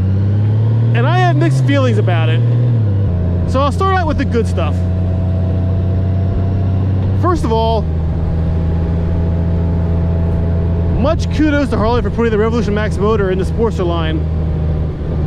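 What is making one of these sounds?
A man speaks calmly and close up over the engine noise.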